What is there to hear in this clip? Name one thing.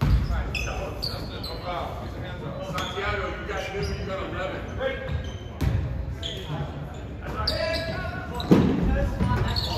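A crowd of spectators calls out and cheers in an echoing hall.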